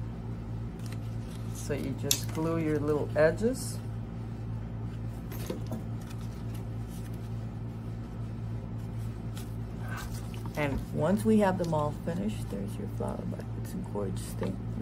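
Soft felt petals rustle and brush as hands shape them.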